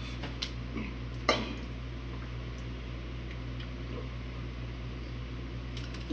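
A man gulps down a drink.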